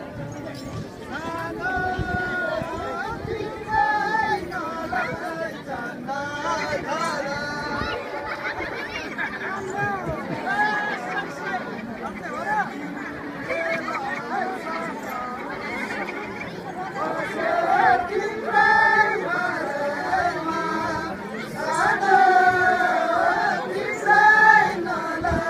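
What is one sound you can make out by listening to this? Women sing together in a chant, close by.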